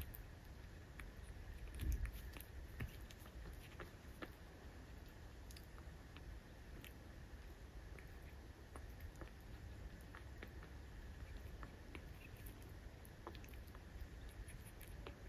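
A puppy's paws scratch and shuffle on a cloth.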